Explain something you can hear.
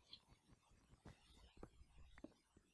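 A pickaxe chips repeatedly at stone.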